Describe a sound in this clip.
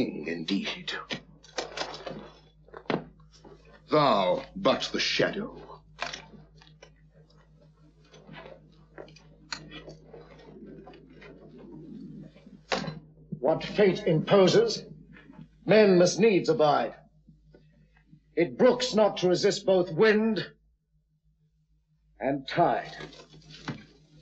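A man speaks forcefully nearby, in bursts with pauses.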